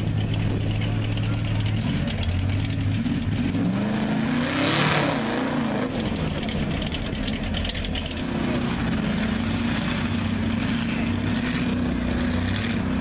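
A big engine roars and revs loudly outdoors.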